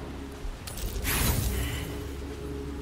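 A die spins with a swelling whoosh.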